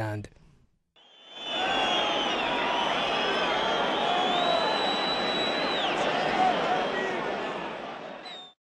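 A large crowd cheers, shouts and whistles outdoors.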